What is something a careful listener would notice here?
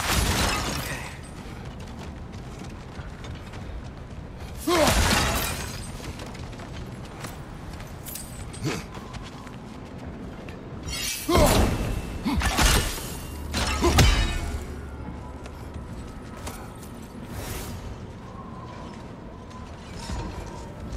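Heavy footsteps thud on wooden planks and stone.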